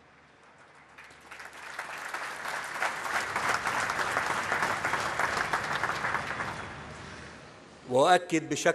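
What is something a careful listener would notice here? A large crowd applauds loudly.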